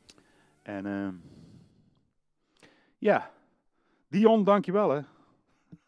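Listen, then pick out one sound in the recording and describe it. A man sings into a microphone in short bursts, close and clear.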